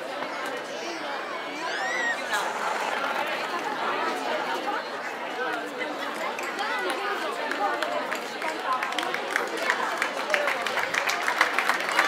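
A large crowd of men and women chatters outdoors.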